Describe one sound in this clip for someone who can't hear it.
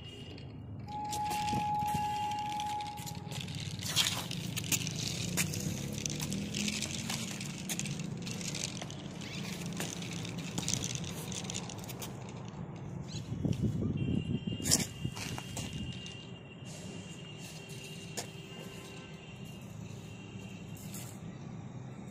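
Small plastic wheels roll and crunch over gritty concrete.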